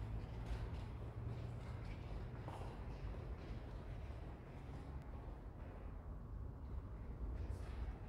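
Footsteps pass close by on a soft floor.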